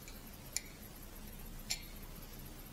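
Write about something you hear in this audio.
A wrench clicks against metal.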